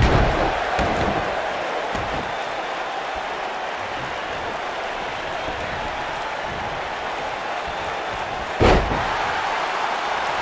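A large crowd cheers and murmurs steadily throughout.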